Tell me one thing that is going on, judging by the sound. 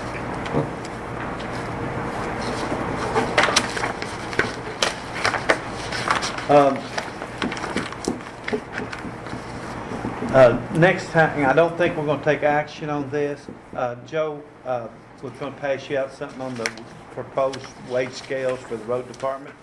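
Papers rustle and shuffle.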